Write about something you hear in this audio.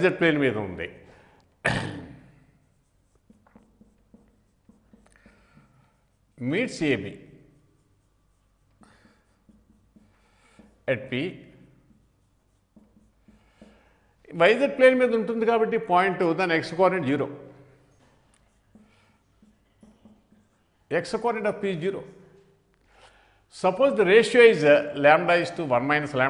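An elderly man speaks calmly and slowly into a microphone, pausing often.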